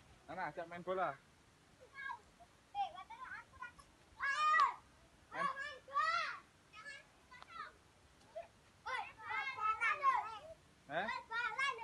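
A small child babbles and talks in a high voice nearby.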